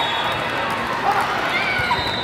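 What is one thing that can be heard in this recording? A volleyball is struck with a sharp smack.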